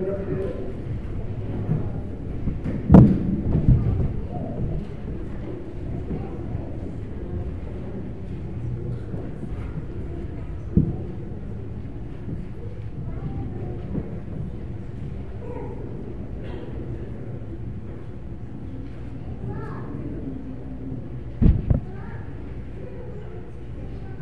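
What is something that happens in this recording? A congregation murmurs and chats quietly in a hall with a light echo.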